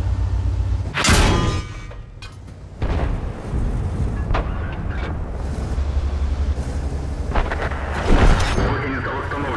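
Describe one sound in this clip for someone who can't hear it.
A heavy tank's cannon fires with a booming blast.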